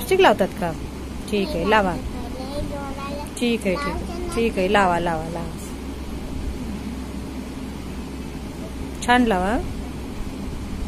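A young girl talks nearby in short bursts.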